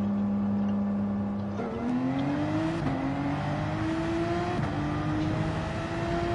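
A racing car engine idles steadily, then revs up and climbs through the gears.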